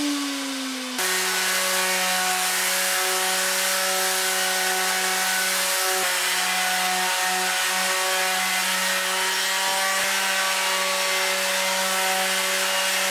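An electric sander buzzes steadily against wood.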